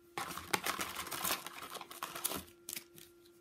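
Cardboard scrapes as a card pack slides out of a box.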